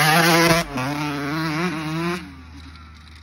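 A small dirt bike engine revs loudly nearby.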